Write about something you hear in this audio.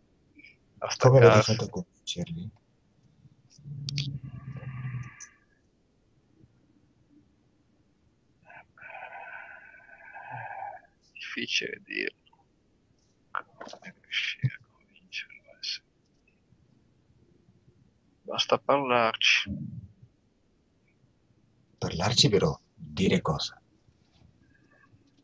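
A second man speaks over an online call.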